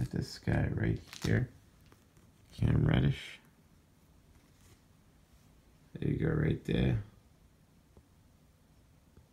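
Plastic card cases click and rub together in someone's hands.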